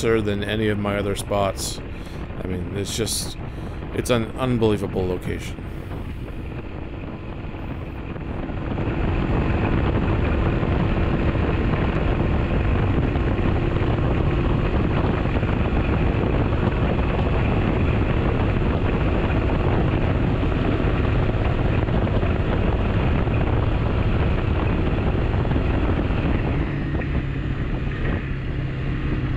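A motorcycle engine hums steadily as it cruises along.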